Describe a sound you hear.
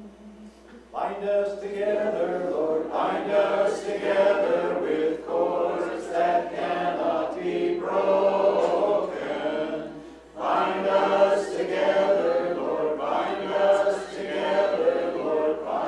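An elderly man sings slowly through a microphone.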